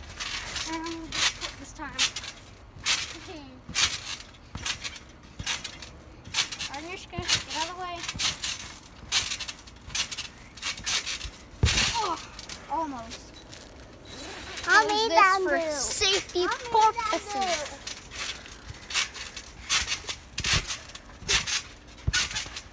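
A trampoline mat thumps and creaks under bouncing feet.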